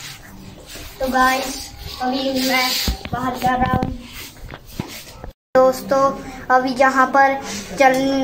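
A young boy talks with excitement close by.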